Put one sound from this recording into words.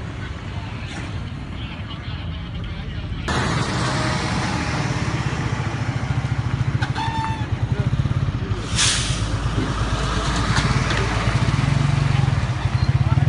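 A heavy truck engine rumbles loudly as it drives past close by.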